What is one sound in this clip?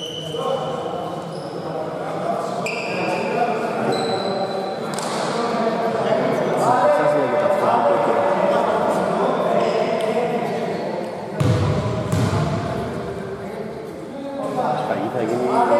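Men call out and talk across a large echoing hall.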